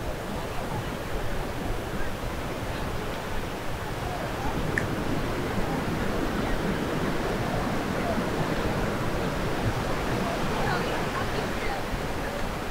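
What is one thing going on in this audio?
Waves wash gently onto a shore in the distance.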